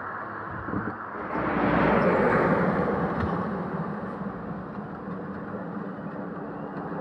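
A truck rumbles past close by and fades into the distance.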